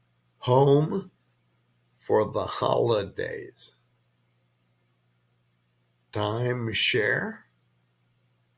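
A man speaks calmly into a microphone in short bursts, close up.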